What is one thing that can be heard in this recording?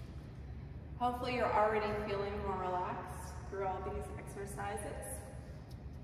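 A young woman sings nearby in an echoing room.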